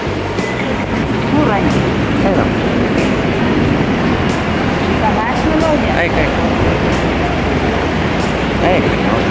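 A steady hum of traffic fills the air.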